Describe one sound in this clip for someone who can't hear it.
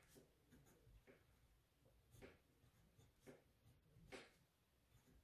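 A pen scratches across paper in short strokes.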